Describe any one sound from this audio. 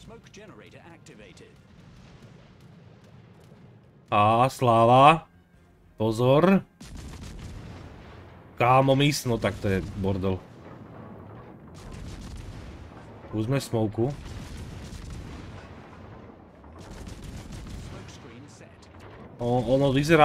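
Heavy ship guns fire with deep booms.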